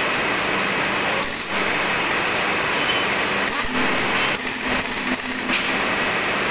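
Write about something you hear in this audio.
A power wrench whirs in short bursts against metal.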